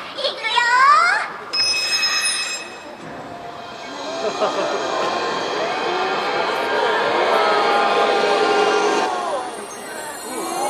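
A large crowd of people chatters and calls out outdoors.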